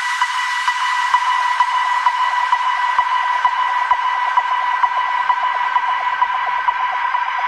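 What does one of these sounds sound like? Loud, tinny dance music with a fast, steady beat plays.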